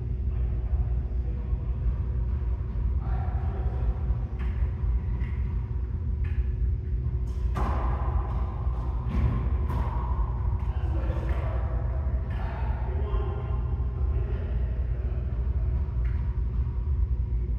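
A rubber ball smacks against the floor and walls, ringing in a large echoing room.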